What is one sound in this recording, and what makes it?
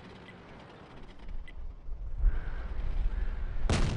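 A tank engine rumbles low and grows louder.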